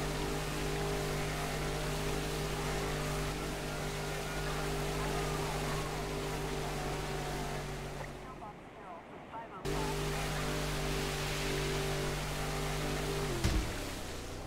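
A speedboat engine drones steadily at high revs.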